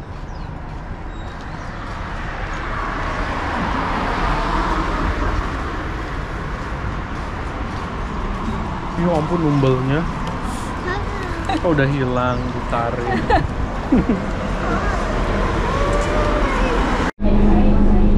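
Road traffic rumbles past outdoors.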